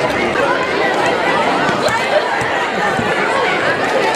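Children shout and cheer from above.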